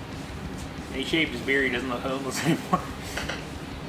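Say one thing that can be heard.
A man laughs close by.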